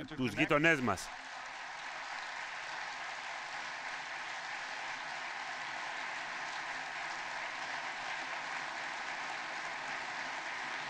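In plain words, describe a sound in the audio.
A large crowd applauds steadily in a large hall.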